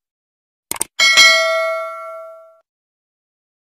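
A small bell chimes once and slowly fades.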